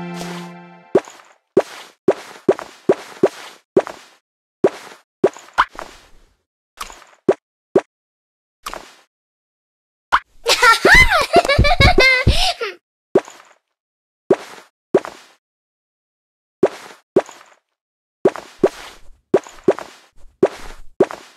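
Short digital clicks and pops sound again and again.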